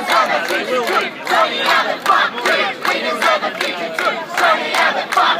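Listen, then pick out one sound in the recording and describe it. A crowd of men and women shouts outdoors.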